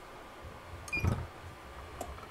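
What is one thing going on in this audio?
A heat press lid clunks shut.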